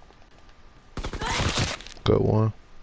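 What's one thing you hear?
Gunfire rattles in a quick burst.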